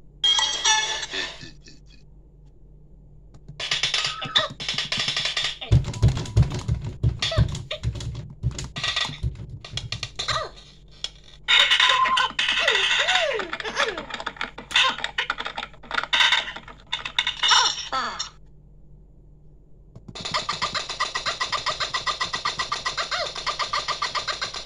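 A high, squeaky cartoon voice chatters from a tablet's small speaker.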